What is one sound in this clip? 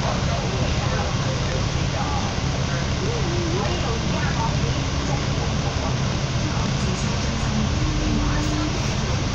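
A bus engine rumbles steadily close ahead.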